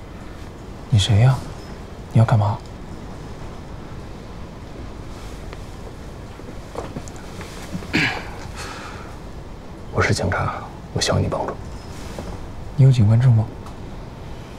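A young man speaks quietly and calmly up close.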